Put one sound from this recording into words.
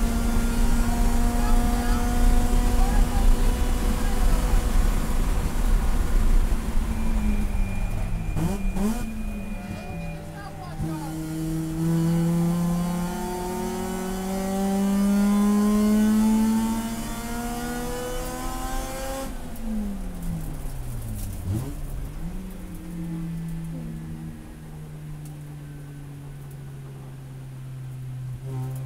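A race car engine roars loudly from inside the cabin, revving up and down through gear changes.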